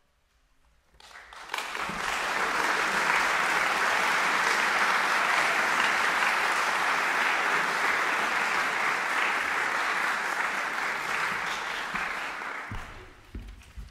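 An audience applauds loudly in a large hall, then the clapping fades out.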